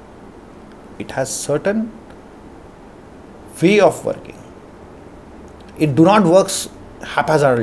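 A young man speaks calmly into a close microphone, in short bursts with pauses.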